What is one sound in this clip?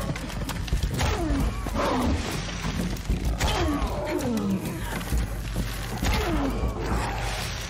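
A creature growls and groans in bursts.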